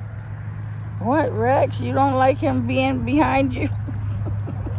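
A small dog whines and yelps excitedly.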